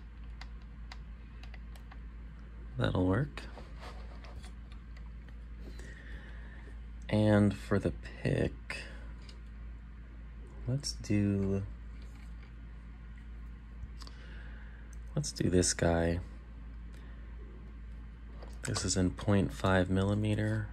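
Small metal tools click and scrape inside a padlock.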